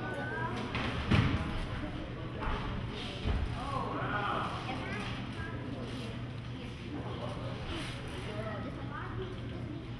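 A crowd of men shouts and cheers encouragement nearby.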